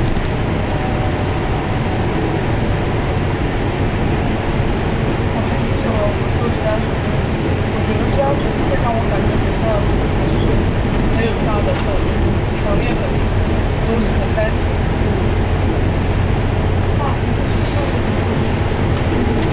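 A vehicle's engine rumbles steadily as it drives along a road.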